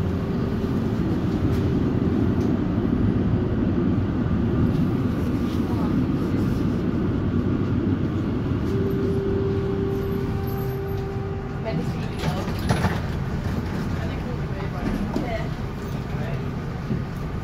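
A tram rumbles along steadily with a low hum.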